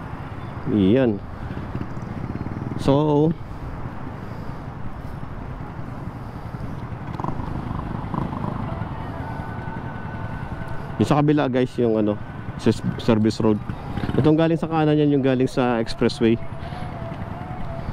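Nearby motorcycle engines idle.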